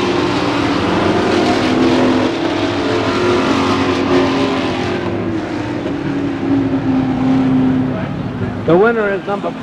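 Race car engines roar loudly past.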